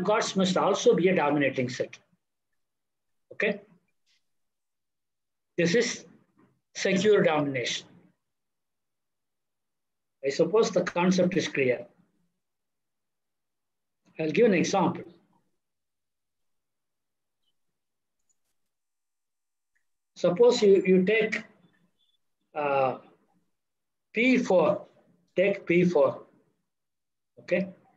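An elderly man lectures calmly through an online call, in short phrases with pauses.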